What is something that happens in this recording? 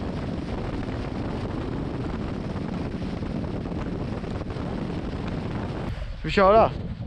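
Wind roars past a fast-moving boat.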